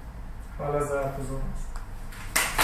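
A man speaks to a room.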